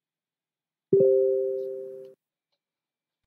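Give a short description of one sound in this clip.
A computer notification chime sounds once.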